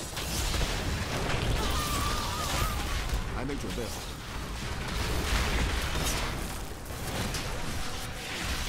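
Fiery spell blasts and crackles burst again and again.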